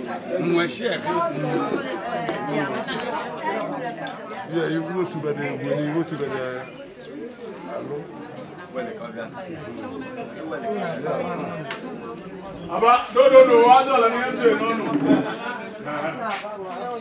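A crowd of men and women chatters nearby, outdoors.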